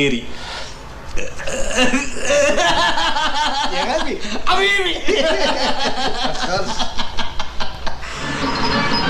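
Two men laugh loudly together up close.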